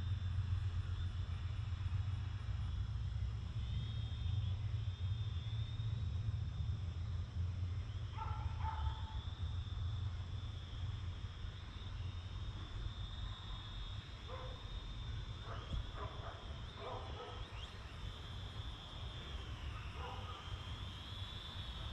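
A drone's motors whine overhead, the pitch rising and falling slightly.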